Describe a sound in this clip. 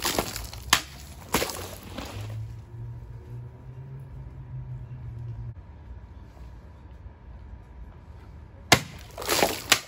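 A sword blade slashes through a water bottle with a sharp whack.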